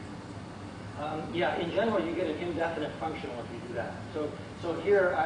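A man lectures calmly, heard from across a room.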